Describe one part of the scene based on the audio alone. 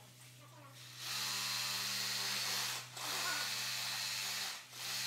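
A power tool whirs loudly in two long bursts.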